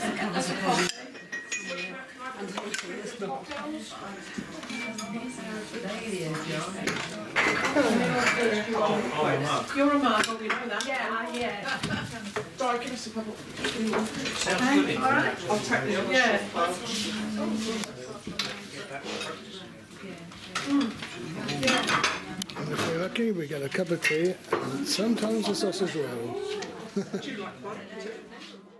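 Elderly women chat nearby.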